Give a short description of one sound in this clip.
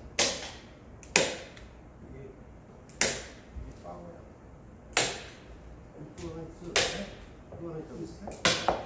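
A staple gun fires with sharp, loud snaps at a steady pace, ringing briefly after each shot.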